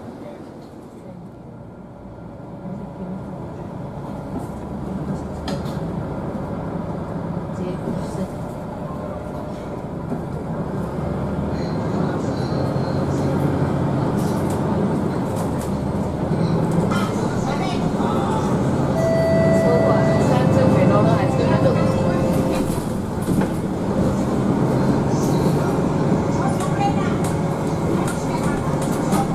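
A bus engine hums and rumbles steadily, growing louder as the bus speeds up.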